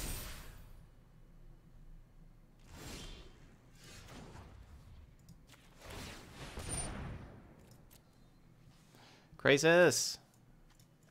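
Whooshing game sound effects play.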